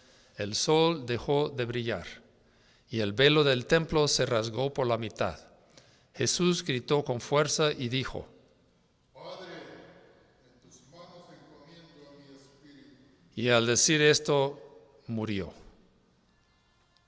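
A man reads aloud through a microphone in an echoing hall.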